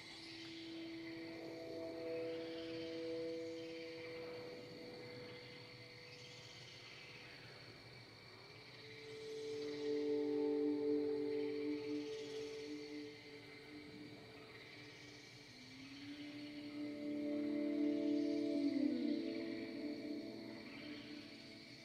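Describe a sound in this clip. Electronic synth tones swell and fade, playing slow sustained chords.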